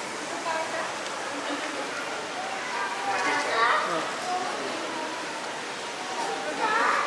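Adults and children chatter in a large echoing hall.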